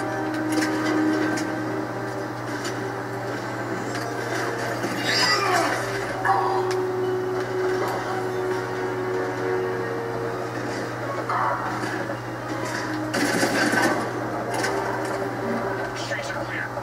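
Gunfire rattles in bursts from a video game through a television speaker.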